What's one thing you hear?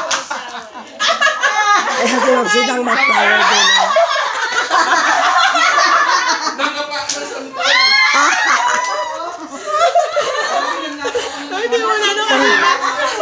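Several women chatter and laugh excitedly nearby.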